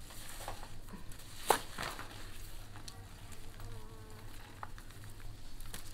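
A knife scrapes and snips at vegetable roots.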